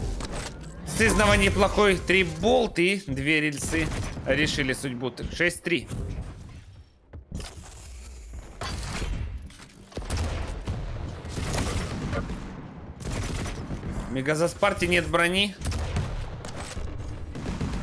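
Gunfire and weapon blasts go off in quick bursts.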